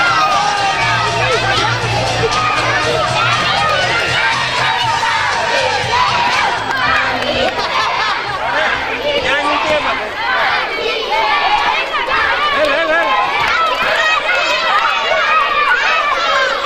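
A crowd of children chatter and shout outdoors.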